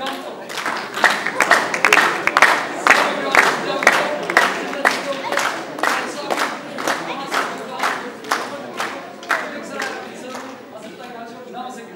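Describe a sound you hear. Children clap their hands in a steady rhythm.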